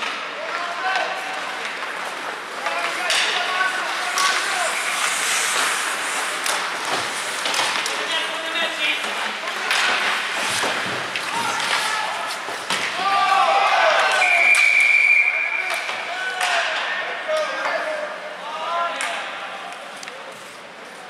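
Young men shout and call out across an echoing rink.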